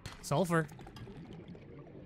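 Bubbles burble and rise underwater.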